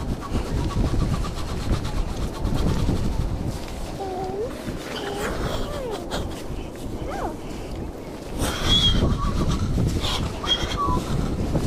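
Wet sand thuds as it is dumped out.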